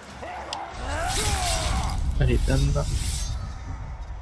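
A sword slashes and strikes with a heavy, crunching impact.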